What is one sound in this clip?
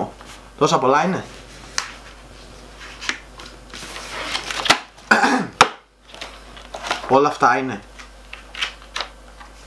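Paper sheets rustle and flip.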